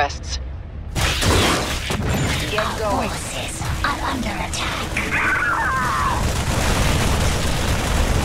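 Gunfire and explosions crackle in a busy battle.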